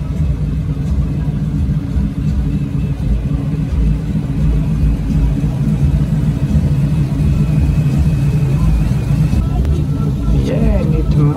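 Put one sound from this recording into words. A big car engine idles with a deep, steady rumble.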